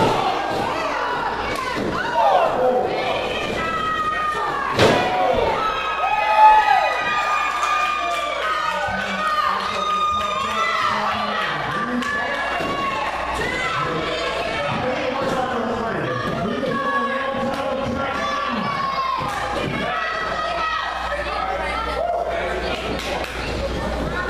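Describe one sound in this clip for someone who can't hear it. A crowd in an echoing hall shouts and cheers throughout.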